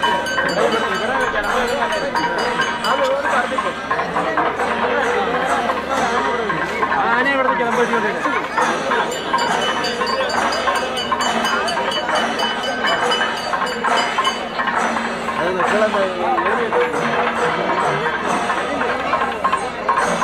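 A large outdoor crowd chatters and calls out nearby.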